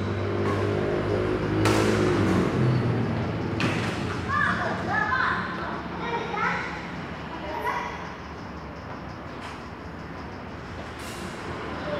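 A racket strikes a shuttlecock with sharp pops in an echoing hall.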